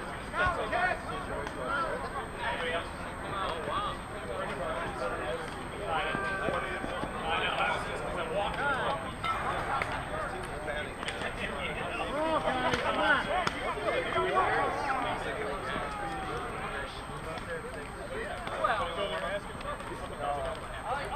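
Several men talk and call out to each other outdoors, some close and some farther off.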